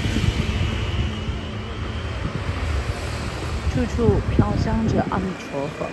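A motor scooter engine runs and pulls away.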